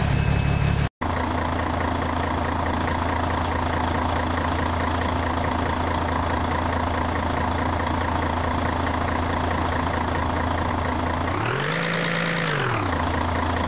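A loader's engine idles with a steady low hum.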